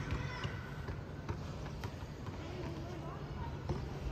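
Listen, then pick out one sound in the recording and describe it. A basketball bounces on a hard court in the distance.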